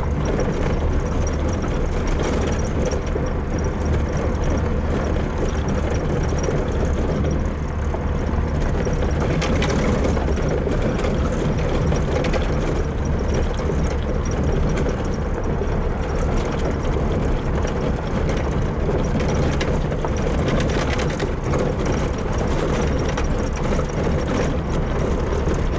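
A car engine hums steadily from inside the cab.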